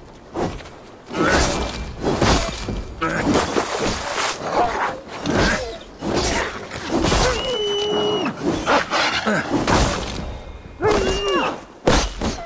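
Wolves snarl and growl during a fight.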